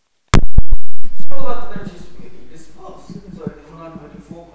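A middle-aged man speaks calmly through a clip-on microphone.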